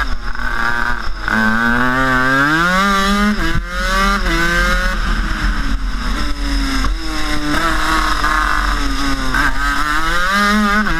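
A go-kart engine buzzes loudly up close, its pitch rising and falling as the kart speeds up and slows for corners.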